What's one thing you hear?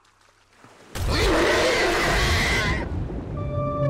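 A young man shouts in surprise close to a microphone.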